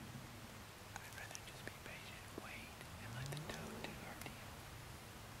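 A man speaks quietly, close by, in a hushed voice.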